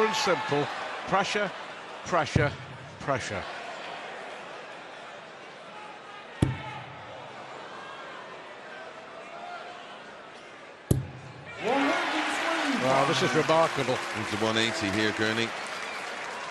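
A large crowd cheers and sings loudly in a big hall.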